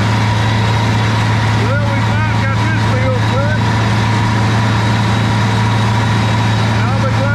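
A tractor engine drones steadily close by.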